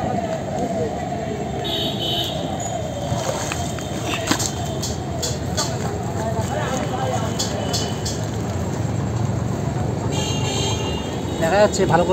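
A wet fishing net splashes and rustles as it is hauled from the water.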